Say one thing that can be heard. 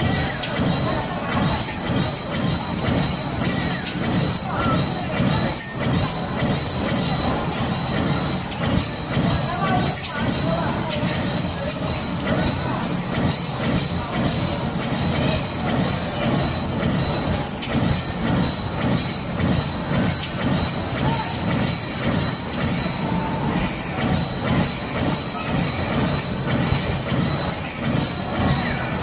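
Arcade game music and sound effects play loudly through loudspeakers.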